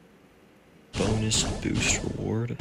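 A bright chime sparkles as a reward bursts open.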